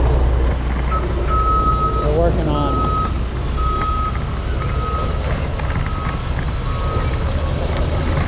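A truck's reversing alarm beeps steadily nearby.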